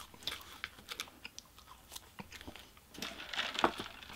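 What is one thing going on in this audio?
A young man chews food close to a microphone.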